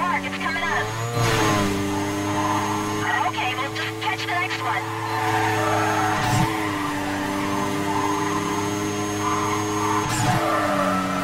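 A car engine roars steadily at high speed, with brief dips as the gears shift.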